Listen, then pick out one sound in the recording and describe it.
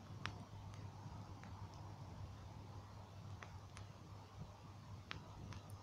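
A bonfire roars with a low rumble.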